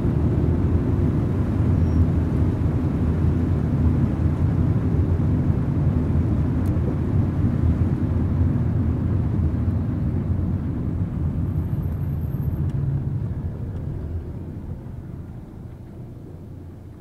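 A car engine hums and tyres roll on a wet road, slowing to a stop.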